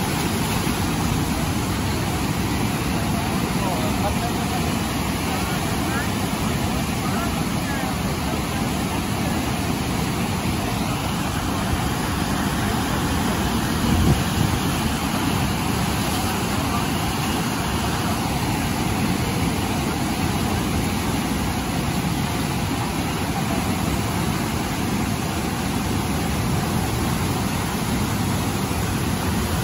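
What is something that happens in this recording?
Powerful river rapids roar and crash steadily over rocks close by.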